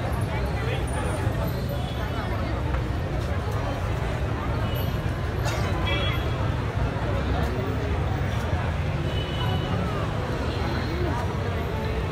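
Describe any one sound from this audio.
A large crowd of men, women and children chatters and calls out nearby, outdoors.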